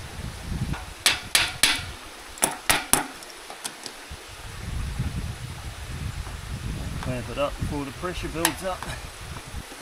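A metal wrench clinks against a pipe fitting.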